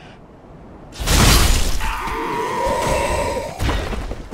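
A sword strikes with a heavy clash.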